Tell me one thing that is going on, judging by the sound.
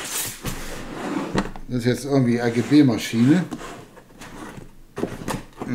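A cardboard box slides and rustles on a desk.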